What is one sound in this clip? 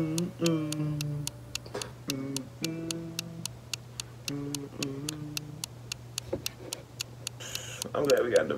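Music plays with a steady beat.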